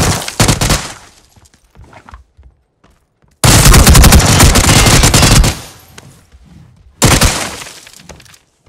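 A rifle fires rapid bursts that echo in a room.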